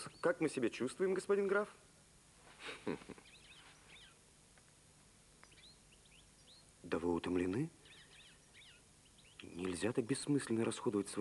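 Men talk with animation, close by.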